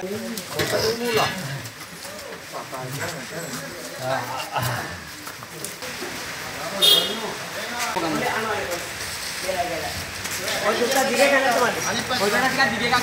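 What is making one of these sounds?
Several men talk loudly and excitedly close by.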